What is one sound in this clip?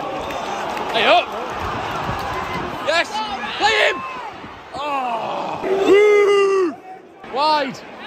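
A close-by man shouts and cheers.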